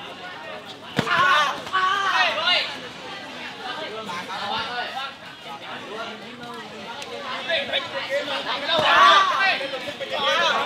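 Young men shout sharply as they strike.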